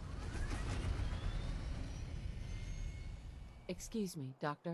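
An aircraft engine rumbles close by.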